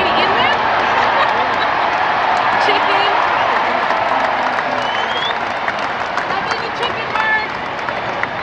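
A large stadium crowd cheers and roars loudly outdoors.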